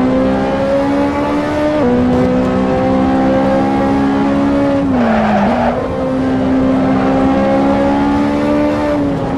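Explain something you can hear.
A car engine drones steadily at high revs, dropping in pitch briefly as it shifts gear.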